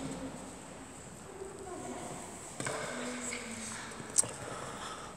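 Young boys talk quietly in a large echoing hall.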